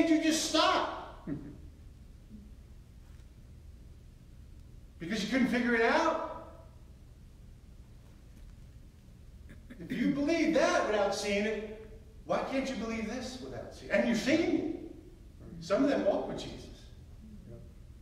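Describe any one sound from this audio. A middle-aged man speaks with animation in bursts, echoing slightly in a large room.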